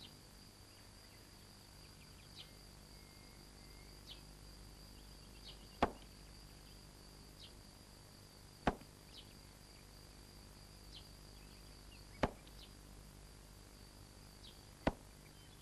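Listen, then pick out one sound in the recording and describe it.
A thread rustles softly as a man pulls it through cloth.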